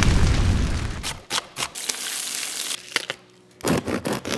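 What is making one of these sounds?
A knife chops quickly on a wooden board.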